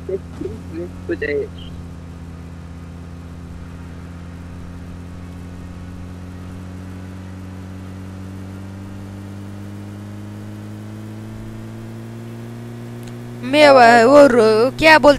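A vehicle engine hums steadily as it drives over rough ground.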